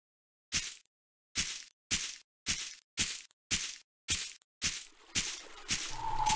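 Footsteps crunch steadily over grass.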